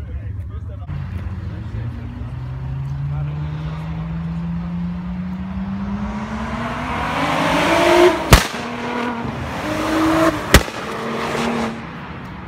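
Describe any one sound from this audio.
A car engine revs up loudly, climbing in pitch.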